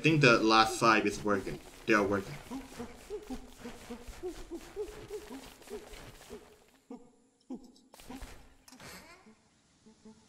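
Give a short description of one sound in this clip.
Light footsteps patter quickly over the ground.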